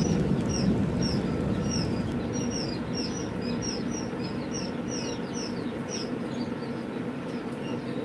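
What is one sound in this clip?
Small birds chirp rapidly and repeatedly.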